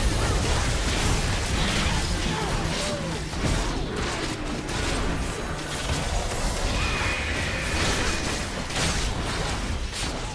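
Spell effects from a video game crackle and blast during a fight.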